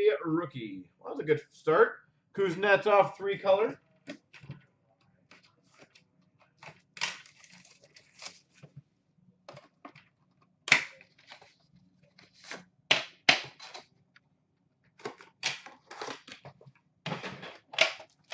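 Card packs and boxes rustle and tap as hands handle them.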